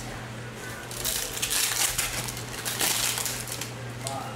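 A plastic wrapper crinkles loudly as it is torn open.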